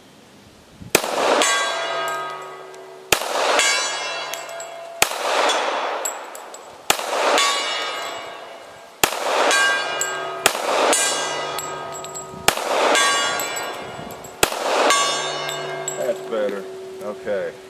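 A steel target rings loudly with each hit.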